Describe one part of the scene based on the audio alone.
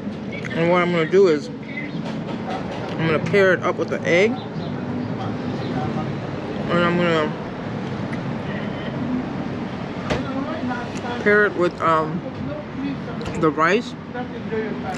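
Plastic cutlery scrapes and taps against a foam food tray.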